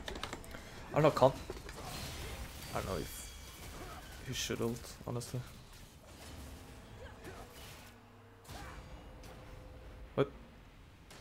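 Sharp impacts crack during a fight.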